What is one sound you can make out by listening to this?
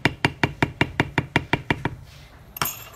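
A mallet taps rapidly and evenly on a leather stamping tool.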